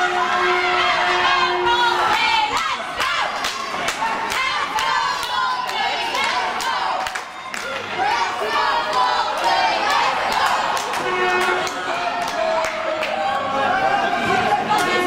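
Young men call out and talk loudly in an echoing rink.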